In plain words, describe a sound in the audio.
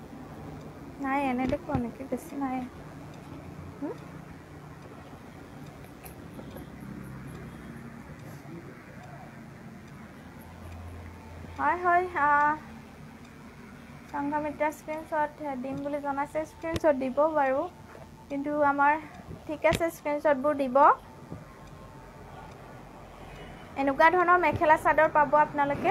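A young woman speaks calmly and clearly into a clip-on microphone.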